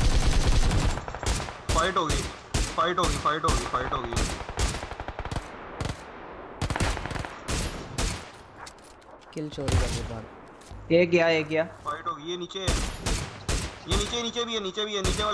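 Rifle shots crack one after another.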